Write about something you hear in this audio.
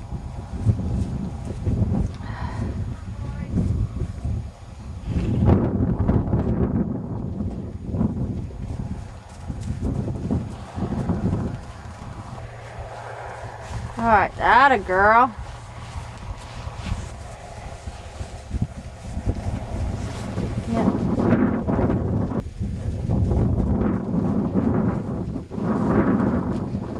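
Horses gallop over snowy ground with thudding hooves.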